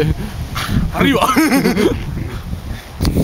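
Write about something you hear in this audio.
A young man laughs heartily close by.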